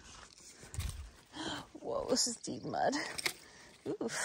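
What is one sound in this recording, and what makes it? Footsteps squelch in mud.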